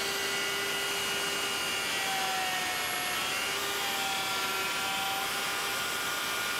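A dust extractor hums steadily.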